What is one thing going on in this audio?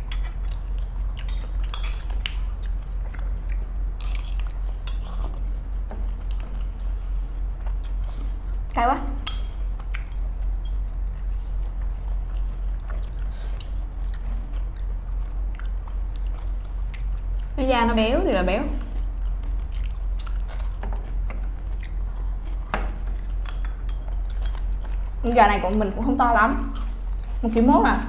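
Chopsticks click against bowls and a plate.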